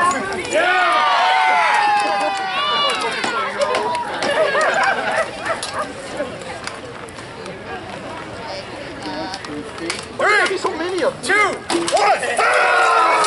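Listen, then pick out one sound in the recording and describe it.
A crowd of men and women talk and shout nearby outdoors.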